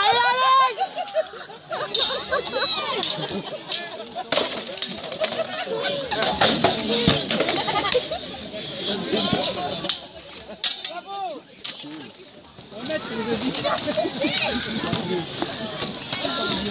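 A crowd of men, women and children talks and cheers outdoors.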